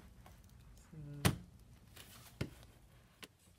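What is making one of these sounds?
A stiff sheet of foil crinkles and crackles as it is handled.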